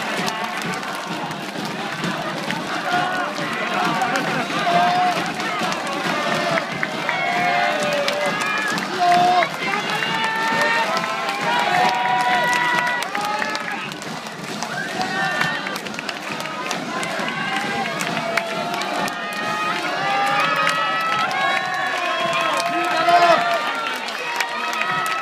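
A large crowd of fans cheers and chants loudly in an open-air stadium.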